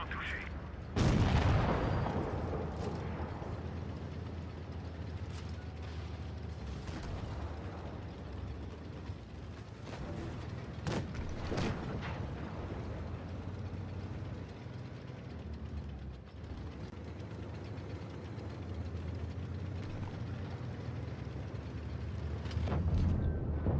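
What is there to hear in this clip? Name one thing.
Tank tracks clank over cobblestones.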